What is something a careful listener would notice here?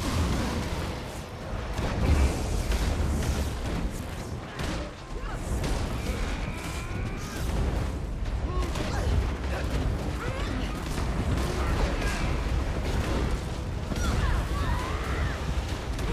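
Spell effects crackle and boom in a fast game battle.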